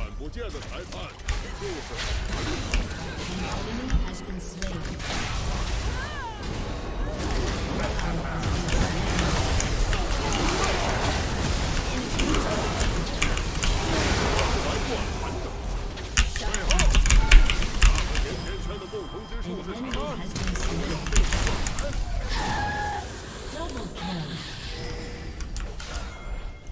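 Video game sword and spell hits clash and crackle.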